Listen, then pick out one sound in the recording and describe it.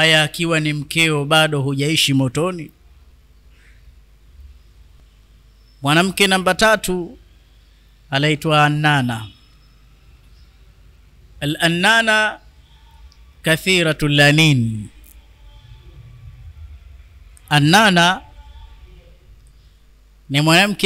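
A woman speaks into a close microphone in short bursts with pauses.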